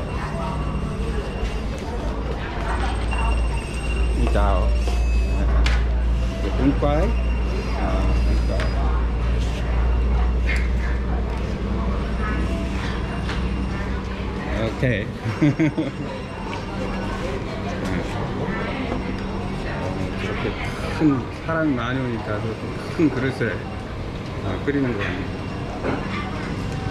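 Men and women talk nearby.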